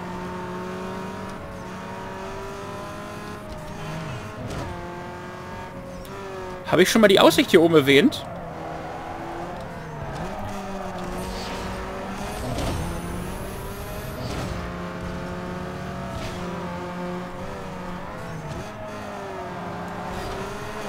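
A racing car engine roars steadily at high revs, its pitch rising and dropping with gear changes.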